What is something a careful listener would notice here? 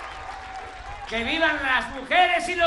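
An elderly man speaks through a microphone to the crowd.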